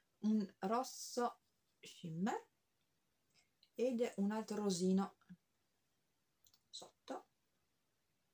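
A young woman talks close to a microphone, with animation.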